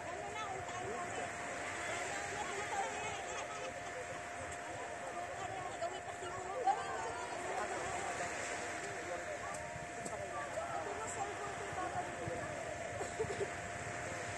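A crowd of people chatter and call out at a distance outdoors.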